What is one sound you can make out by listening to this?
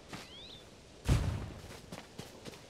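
A heavy rock thuds onto the ground.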